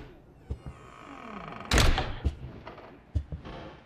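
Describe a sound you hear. A young woman gasps softly close by.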